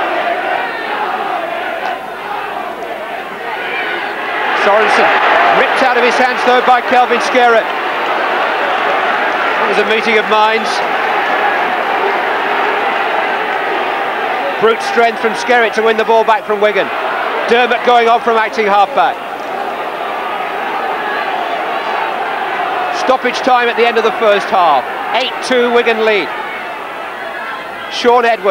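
A large stadium crowd murmurs and roars, swelling at times.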